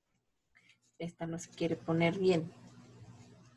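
A woman speaks calmly, close to a microphone.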